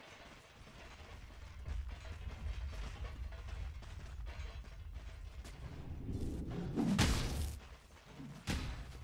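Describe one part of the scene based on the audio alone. Video game combat effects clash and thud.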